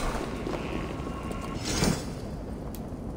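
A chest opens with a magical shimmer.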